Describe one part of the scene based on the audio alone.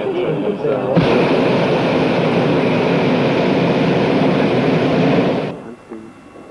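A gas burner roars loudly and steadily overhead.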